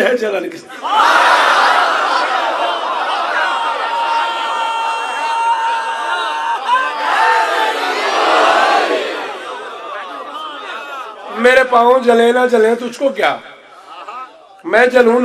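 A man chants loudly and with passion into a microphone, heard through a loudspeaker with echo.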